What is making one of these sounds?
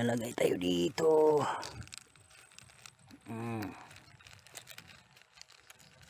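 Granules patter onto dry leaves.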